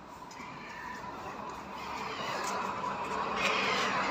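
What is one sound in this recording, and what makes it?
A train approaches along the tracks with a growing rumble.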